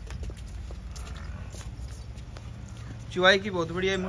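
A buffalo's hooves step on a brick floor.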